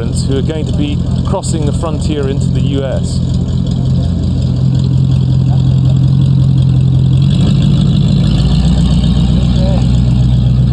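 A van engine idles and then pulls away.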